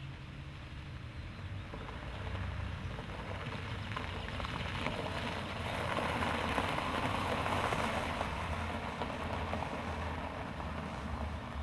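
A car engine hums and revs as a car drives past.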